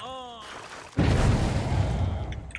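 A metal bear trap snaps shut with a loud clang.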